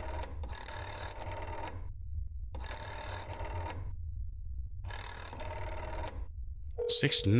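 A rotary telephone dial whirs back after each turn.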